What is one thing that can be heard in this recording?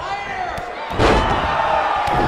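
A body slams hard onto a wrestling mat with a heavy thud.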